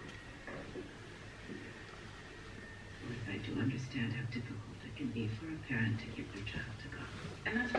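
Clothes rustle as they are handled and folded.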